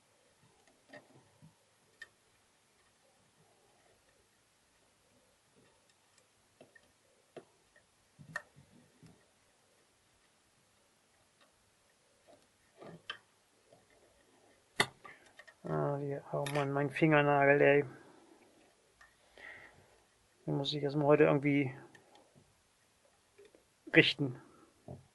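Small metal parts of a lock click and tap as they are handled.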